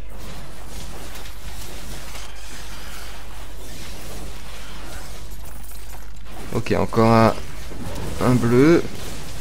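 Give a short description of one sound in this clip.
Magic spells crackle and burst during a fight.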